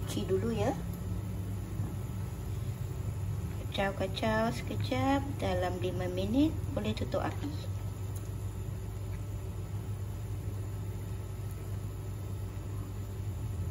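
A pot of soup bubbles and simmers steadily.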